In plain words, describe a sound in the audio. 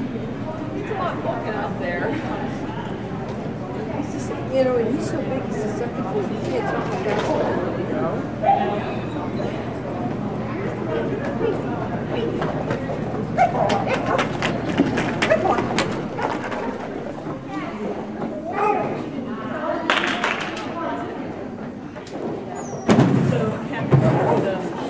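A handler calls out commands to a dog with animation, echoing in a large hall.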